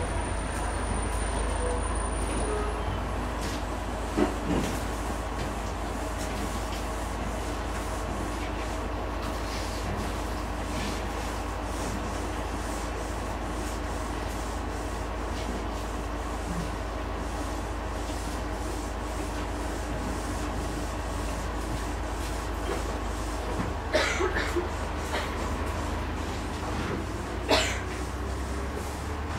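A paintbrush softly scrapes and dabs on canvas.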